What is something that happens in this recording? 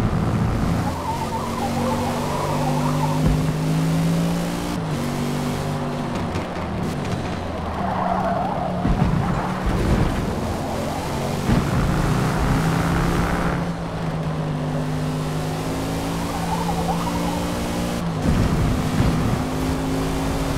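A car engine revs high and shifts through gears.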